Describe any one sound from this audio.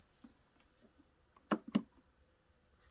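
A button clicks on a machine.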